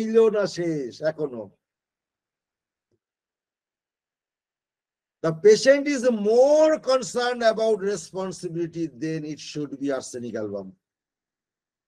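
An older man speaks calmly over an online call, lecturing.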